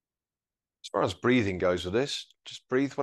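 An older man speaks calmly close by.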